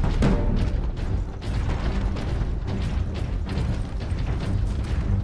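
Heavy armoured footsteps thud.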